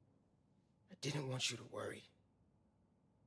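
A young man speaks quietly and gently.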